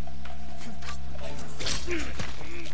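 A blade stabs into a body with a sharp hit.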